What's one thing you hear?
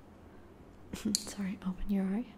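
A young woman speaks quietly close to a microphone.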